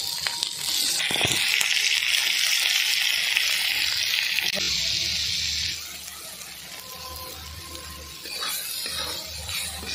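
A spatula scrapes against an iron pan.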